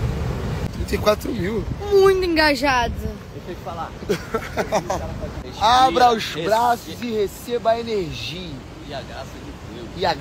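A young woman talks excitedly and loudly into a phone microphone.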